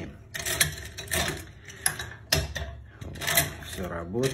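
Metal picks scrape and click inside a door lock.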